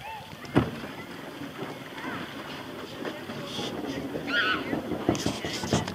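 Paddles dip and splash in water.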